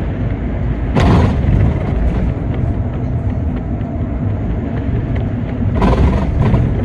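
A vehicle whooshes past nearby.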